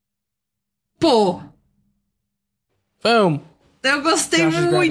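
A young woman talks and laughs with animation through a microphone.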